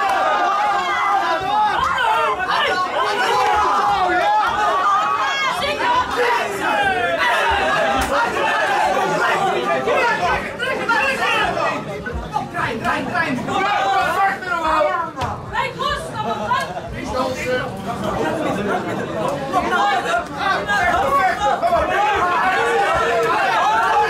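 Punches and kicks thud against bodies.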